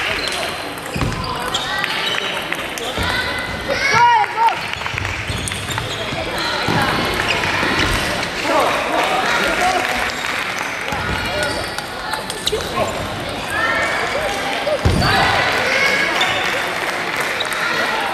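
A ping pong ball clicks back and forth between paddles and the table.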